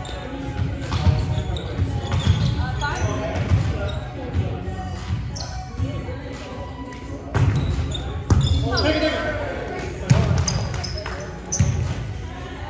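A volleyball is struck with sharp slaps in a large echoing gym.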